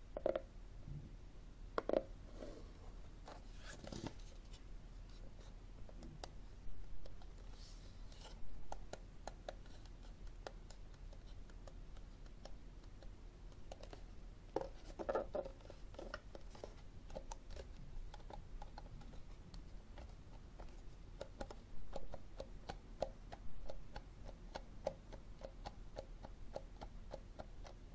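Hands rub and shuffle a plastic case, with soft knocks.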